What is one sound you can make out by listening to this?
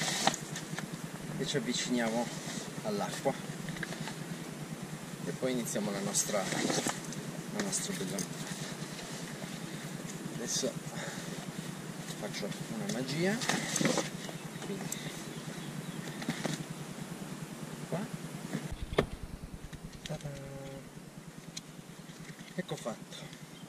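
A wetsuit rustles and flaps as it is handled.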